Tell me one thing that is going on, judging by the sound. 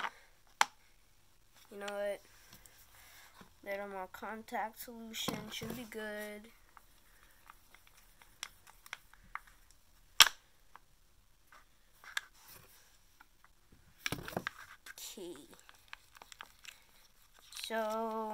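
A stick scrapes and stirs inside a small plastic tub.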